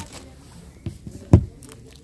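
A crisp chip crunches.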